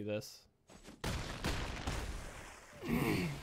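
A magical impact bursts with a whoosh.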